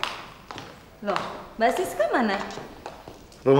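A young woman speaks with agitation.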